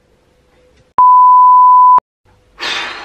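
A steady test tone beeps.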